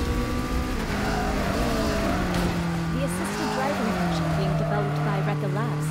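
Tyres screech as a car drifts around a bend.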